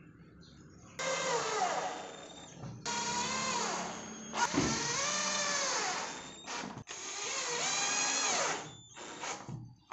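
A cordless drill whirs in short bursts, speeding up and slowing down.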